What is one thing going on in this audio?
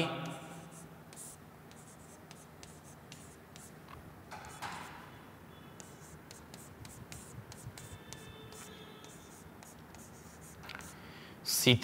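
A marker squeaks faintly on a board.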